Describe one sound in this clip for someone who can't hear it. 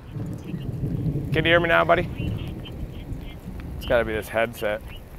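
A young man talks into a phone outdoors.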